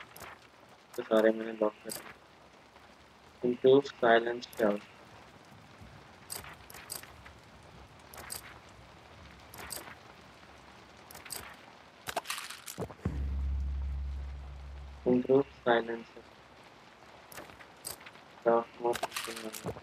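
A young man speaks in short bursts into a microphone, close up.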